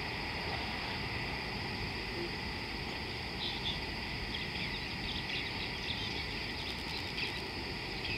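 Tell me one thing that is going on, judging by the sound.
A muddy river flows and laps steadily against its bank.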